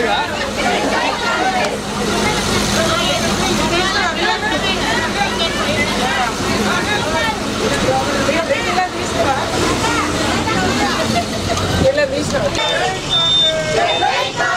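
A crowd of women chatters nearby.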